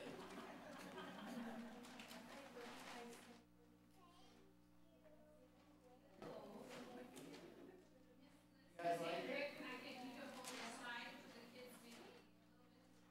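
Adults talk and laugh softly in a large echoing room.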